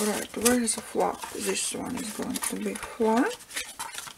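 A stiff sheet of paper is folded and creased.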